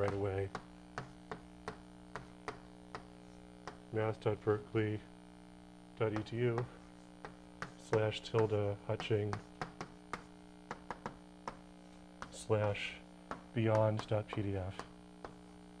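A man speaks calmly in short phrases, as if lecturing.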